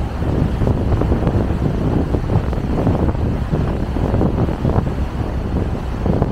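Choppy waves slap and splash on the water.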